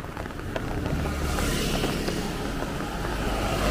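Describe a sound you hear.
A motorbike passes by.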